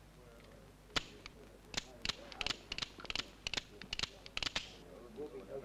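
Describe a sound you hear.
Metal clicks sharply as a revolver is loaded.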